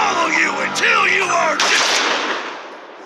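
A cartoon creature shouts angrily up close.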